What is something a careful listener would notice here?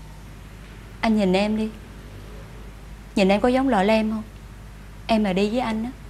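A young woman speaks firmly in short bursts, close by.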